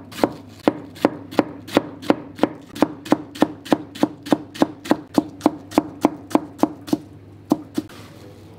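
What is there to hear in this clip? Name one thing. A knife chops quickly and steadily on a cutting board.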